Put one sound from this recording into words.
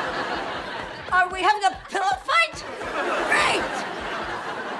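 An elderly woman shouts angrily.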